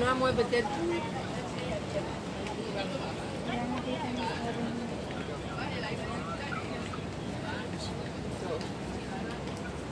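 A crowd murmurs in a busy street market.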